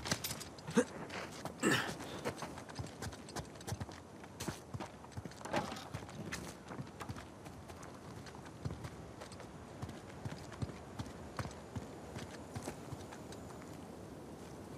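Footsteps run quickly over stone and sand.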